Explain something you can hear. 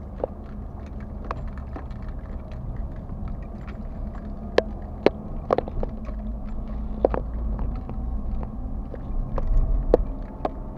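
Tyres roll on a road surface.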